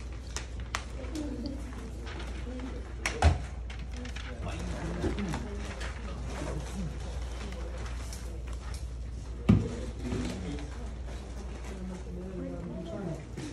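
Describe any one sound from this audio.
Teenagers talk and murmur nearby.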